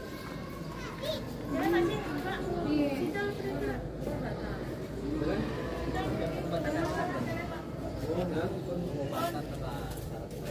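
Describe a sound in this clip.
Several women and men talk among themselves nearby, in a lively crowd.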